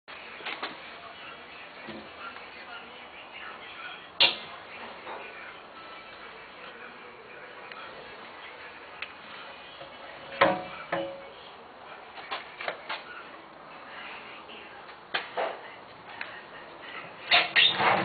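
Wooden cabinet parts knock and clatter as a hand handles them.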